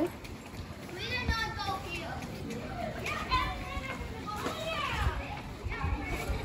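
Children call out at a doorway.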